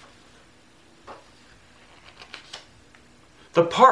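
A page of a book rustles softly as it is handled.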